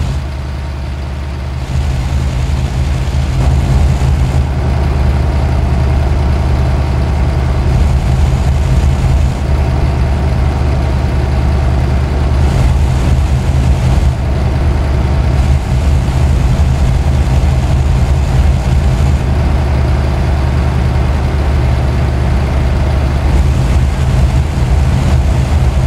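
A truck engine hums steadily and deeply from inside the cab.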